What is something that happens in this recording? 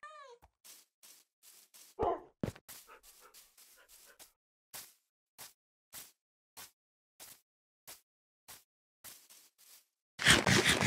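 Footsteps crunch steadily on grass and gravel.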